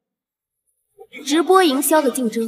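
A young woman speaks firmly, close by.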